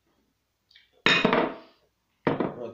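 A glass is set down on a table with a knock.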